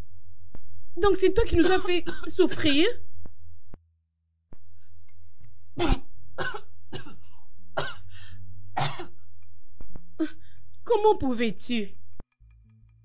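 An older woman cries and wails loudly.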